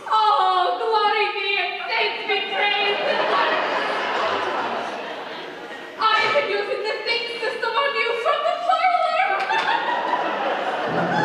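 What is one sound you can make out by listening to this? Young women sing a duet in a large echoing hall.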